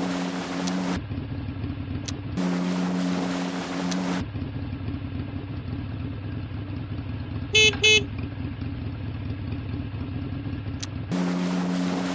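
A small scooter engine hums steadily.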